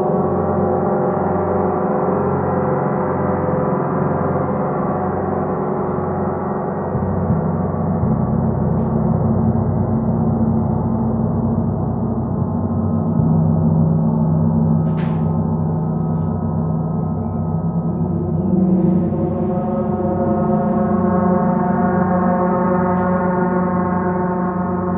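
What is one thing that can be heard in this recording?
Large gongs played with a soft mallet build into a deep, shimmering wash of overlapping ringing tones.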